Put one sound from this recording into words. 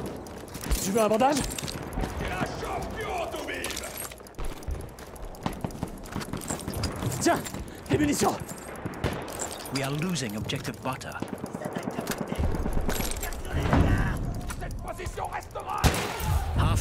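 Rifle shots crack sharply now and then.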